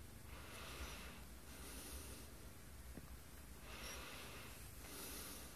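A cat purrs steadily up close.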